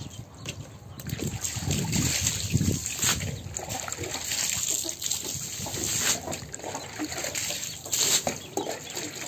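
Water sprays and splashes onto hard ground.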